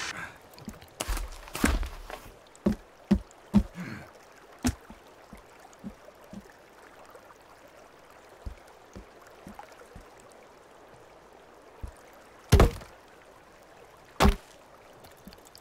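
Footsteps knock on wooden boards.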